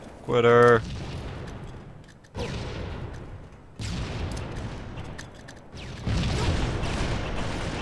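A grenade explodes with a heavy boom.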